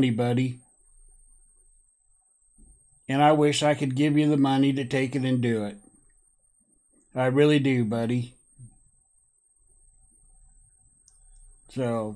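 A man speaks loudly and with animation, close to a microphone, in short bursts.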